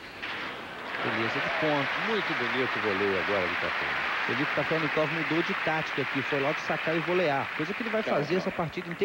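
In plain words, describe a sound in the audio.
A large crowd applauds loudly.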